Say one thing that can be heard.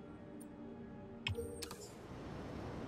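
A menu tone plays softly and then chimes as it closes.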